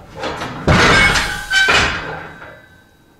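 Heavy weight plates clank loudly as a leg press sled drops onto its stops.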